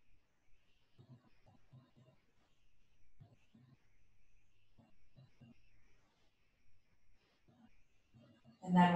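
A woman speaks calmly and softly, close by.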